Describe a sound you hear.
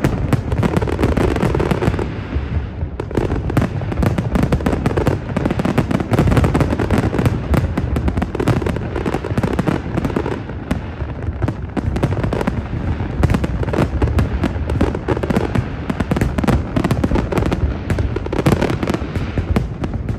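Fireworks boom and echo across open water.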